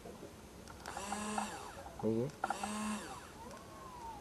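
A small relay clicks and buzzes briefly.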